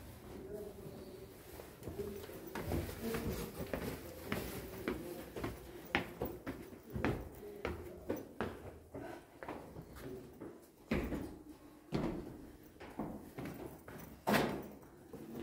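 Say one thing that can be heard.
Footsteps tap down stone stairs.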